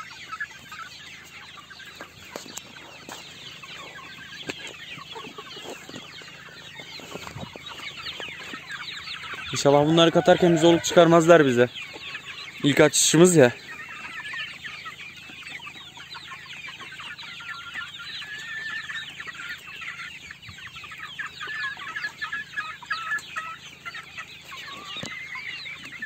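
Chickens cluck and chatter nearby, outdoors.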